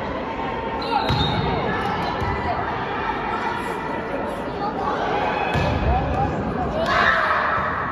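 A volleyball is struck with a sharp thump.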